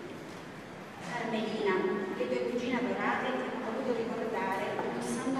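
A woman reads out through a microphone in a reverberant hall.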